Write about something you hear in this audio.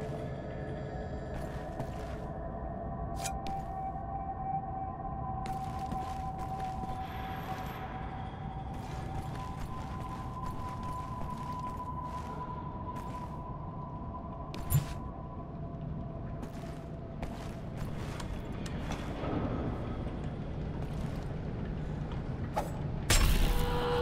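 Footsteps clank on metal floors.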